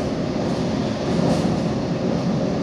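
Another train rushes past close by with a brief whoosh.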